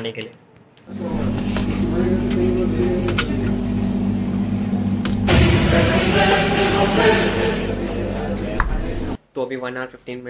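A refrigerator hums steadily.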